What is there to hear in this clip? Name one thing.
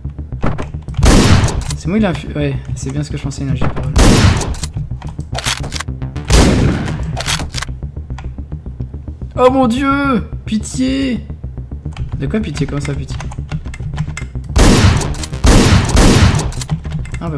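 Gunshots ring out in sharp, loud bursts.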